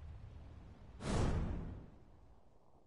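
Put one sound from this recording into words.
A sharp whoosh bursts out and fades.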